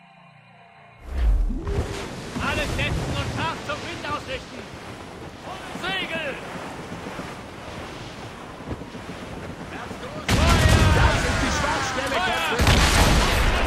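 Waves wash and splash against a ship's hull.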